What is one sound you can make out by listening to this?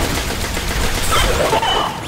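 Electric energy crackles and fizzes.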